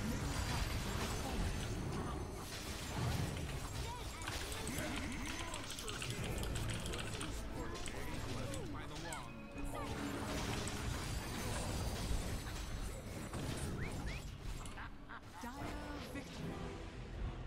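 Game battle sounds of spells and clashes play.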